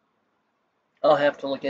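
A man speaks briefly and loudly, close to a microphone.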